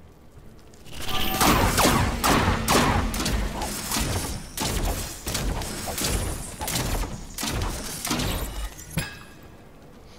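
Swords clash and magic blasts crackle in a fierce fight.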